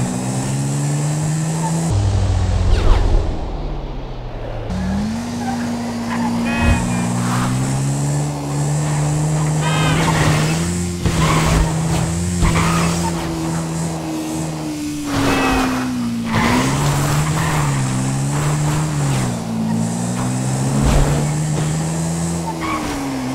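A motorbike engine hums steadily and changes pitch as it speeds up and slows down.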